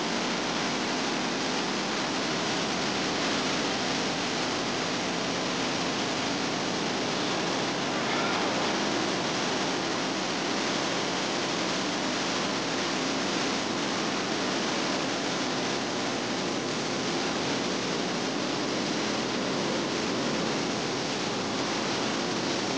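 Floodwater roars and churns loudly and steadily below a dam.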